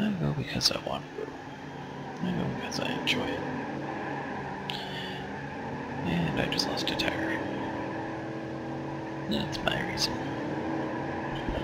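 A car engine revs as the car speeds up.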